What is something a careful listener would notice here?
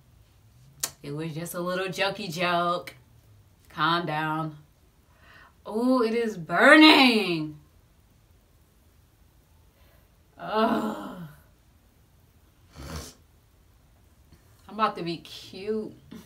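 A young woman talks close by, calmly and in short bursts with pauses.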